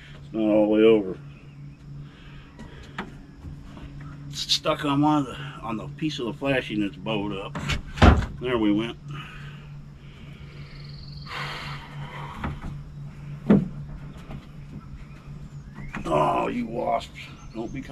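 A man talks with animation outdoors, from a little distance.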